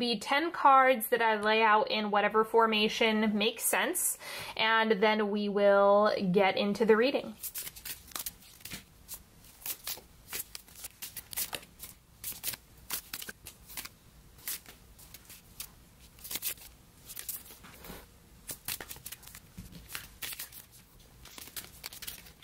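Cards swish and rustle as a deck is shuffled.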